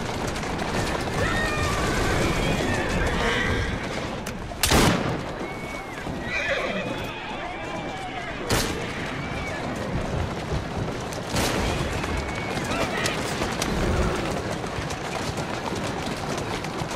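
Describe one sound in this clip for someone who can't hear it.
Horse hooves clatter on cobblestones.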